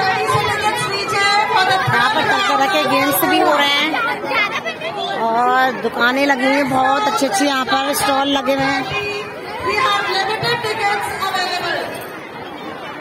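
A middle-aged woman speaks with animation close to the microphone.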